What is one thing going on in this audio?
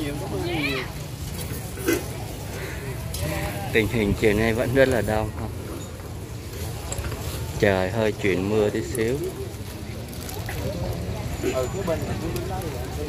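A crowd of adults chatters outdoors, with some voices rising close by.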